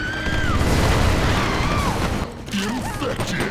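Gunfire from a video game rattles through a television speaker.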